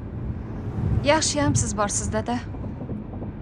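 A young woman speaks calmly up close.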